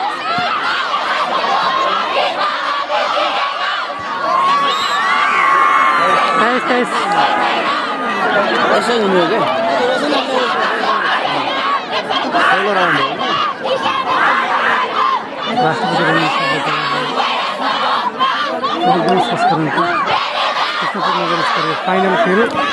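Young men shout to each other on the court.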